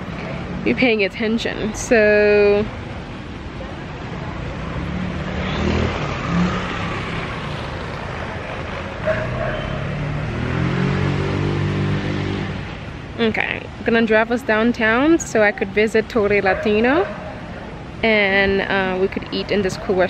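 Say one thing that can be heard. A young woman speaks close by in a shaky, emotional voice.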